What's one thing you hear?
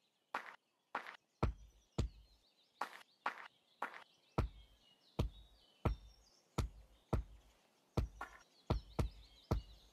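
Heavy blows thud against a tree trunk, one after another.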